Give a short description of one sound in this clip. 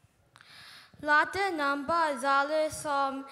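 A young boy sings through a microphone over loudspeakers.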